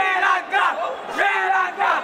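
A crowd of young men cheers and shouts loudly.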